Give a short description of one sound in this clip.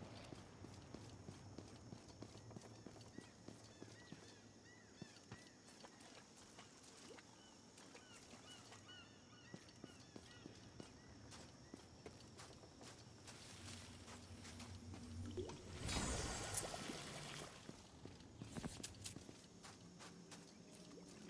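Running footsteps patter on sand and stone.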